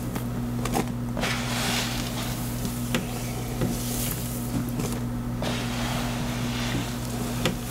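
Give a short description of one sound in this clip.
Fingers rub and squish through wet, soapy hair.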